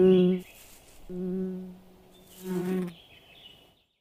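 A bee buzzes loudly in bursts.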